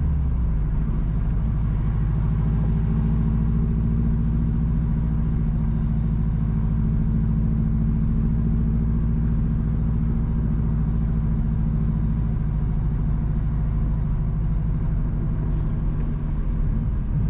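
A car engine hums steadily from inside as the vehicle drives along.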